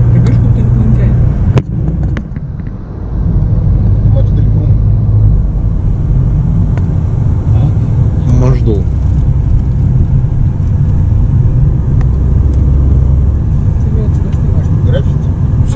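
A car engine rumbles steadily from inside a moving car.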